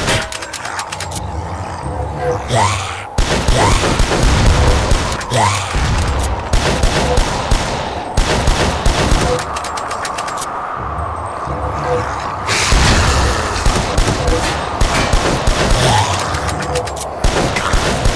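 Shotgun blasts go off again and again.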